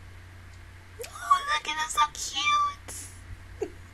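A young woman laughs close to a microphone.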